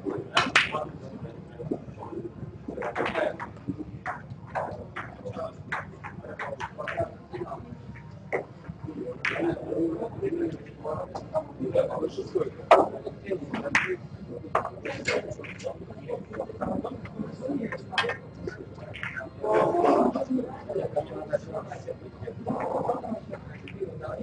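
Snooker balls clack against each other and roll across the table.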